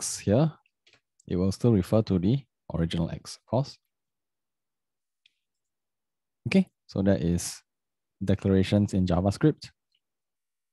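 A young man talks calmly and close to a microphone, in short bursts with pauses.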